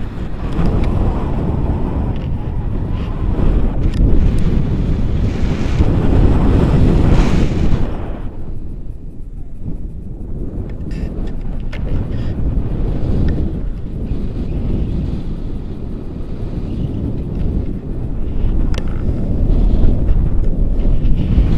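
Wind roars loudly against the microphone.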